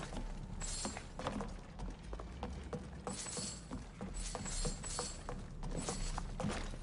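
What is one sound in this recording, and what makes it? Coins and clay pots clink and rattle underfoot as footsteps crunch along.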